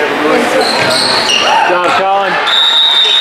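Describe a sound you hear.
Sneakers squeak sharply on a gym floor.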